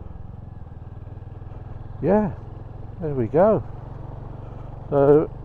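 A motorcycle engine runs with a steady low rumble.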